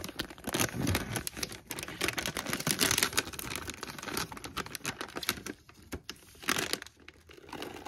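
A plastic snack bag crinkles and rustles in someone's hands.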